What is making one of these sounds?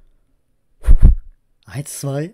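A middle-aged man blows a short puff of breath.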